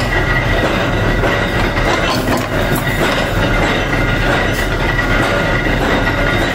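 A metal fork clinks against steel.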